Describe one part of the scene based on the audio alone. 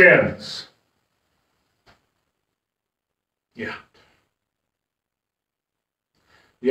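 An older man speaks calmly into a nearby microphone, with long pauses.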